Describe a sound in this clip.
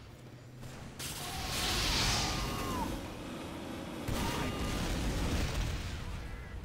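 Explosions boom and flames roar.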